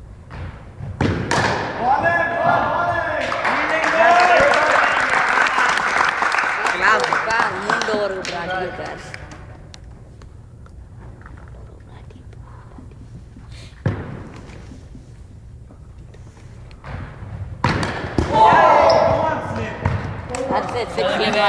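Young men call out and shout to each other in a large echoing hall.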